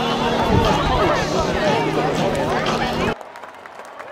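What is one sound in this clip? A crowd chatters and cheers loudly outdoors.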